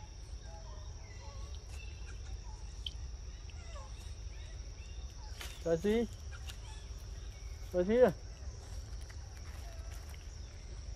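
A monkey chews and smacks on soft fruit.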